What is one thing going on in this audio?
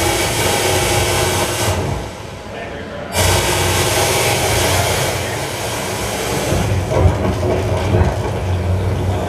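Loud electronic music with a heavy bass beat plays through loudspeakers in an echoing room.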